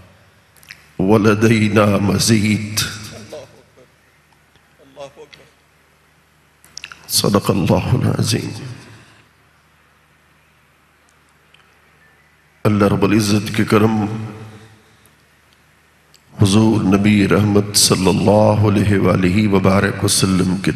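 An elderly man recites with feeling into a microphone, in phrases broken by pauses, his voice echoing in a large hall.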